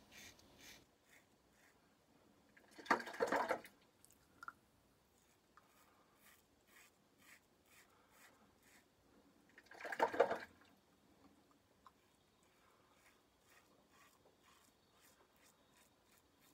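A razor scrapes across stubble in short, rasping strokes.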